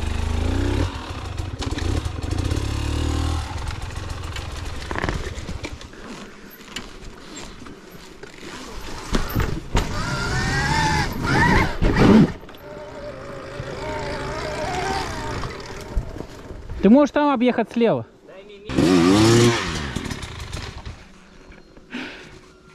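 A dirt bike engine revs up and down in sharp bursts close by.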